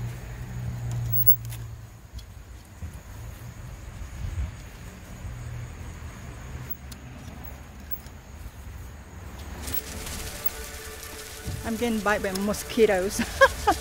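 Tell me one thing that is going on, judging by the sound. Scissors snip through plant stems.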